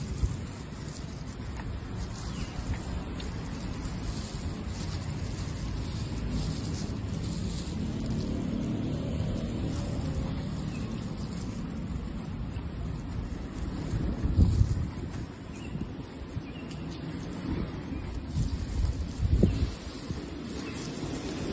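A woman chews and slurps food noisily close by.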